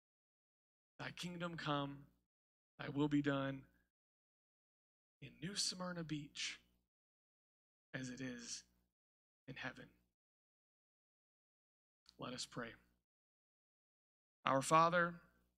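A man speaks calmly through a microphone in short phrases with pauses.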